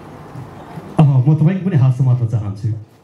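A young man speaks loudly into a microphone over loudspeakers.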